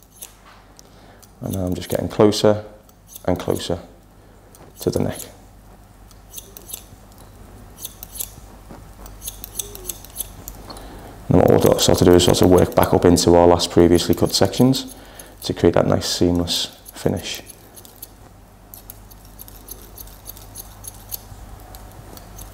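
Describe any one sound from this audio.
Scissors snip through hair.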